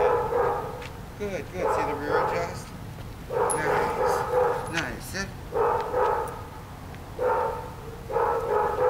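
An elderly man talks to a dog in lively bursts nearby, outdoors.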